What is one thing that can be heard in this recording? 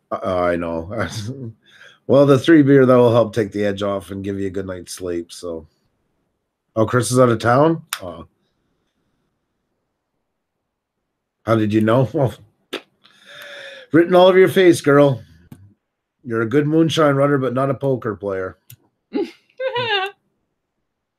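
A middle-aged man talks with animation into a microphone, heard as on an online call.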